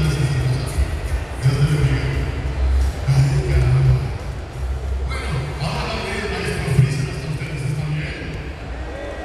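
Music with a heavy beat plays loudly through loudspeakers.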